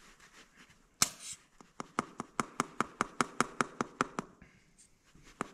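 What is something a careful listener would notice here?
A small metal tool clicks rapidly and steadily.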